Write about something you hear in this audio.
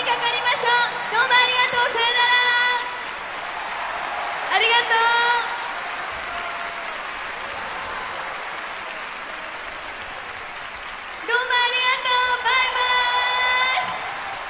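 A large crowd cheers and shouts in a big echoing hall.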